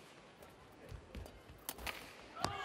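A racket strikes a shuttlecock with sharp smacks.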